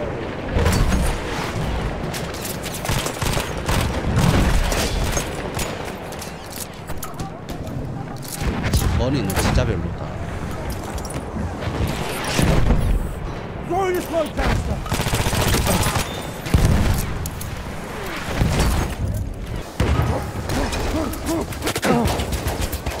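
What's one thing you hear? Gunshots bang in quick bursts.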